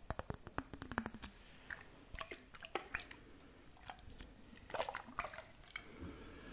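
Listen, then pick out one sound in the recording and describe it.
Fingernails tap a glass jar close to a microphone.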